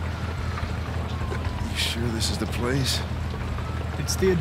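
An older man asks a question in a gruff voice.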